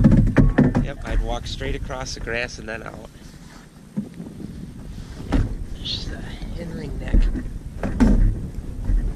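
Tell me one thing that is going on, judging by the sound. Wind blows against the microphone outdoors.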